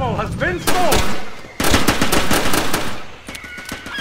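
Pistol shots fire in rapid bursts.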